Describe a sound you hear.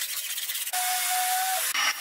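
A power sander whirs.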